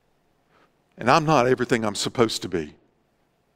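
A middle-aged man speaks calmly into a microphone in a large room.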